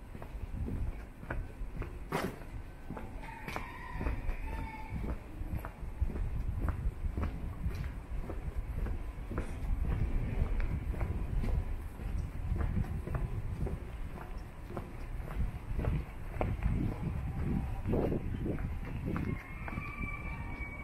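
Footsteps crunch steadily on cobblestones.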